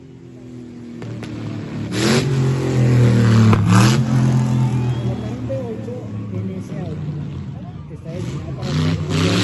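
A car engine roars loudly as a car speeds past close by and fades away.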